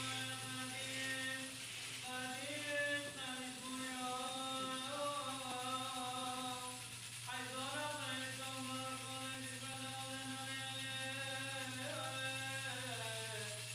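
A man chants a slow, sustained melody in a reverberant hall.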